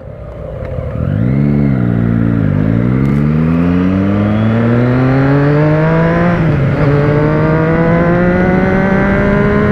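A parallel-twin motorcycle engine revs up as the bike accelerates through the gears.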